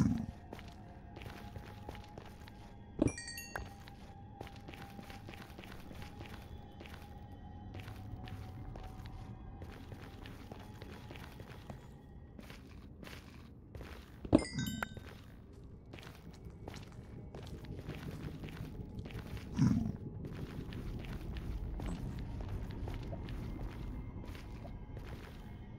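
Footsteps crunch steadily on rough ground.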